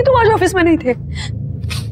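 A young woman speaks angrily and loudly, close by.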